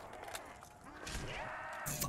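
A zombie growls close by.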